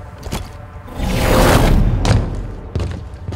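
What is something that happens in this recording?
A deep whooshing boom rumbles loudly.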